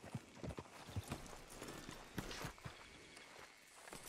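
A horse's hooves clop on dirt.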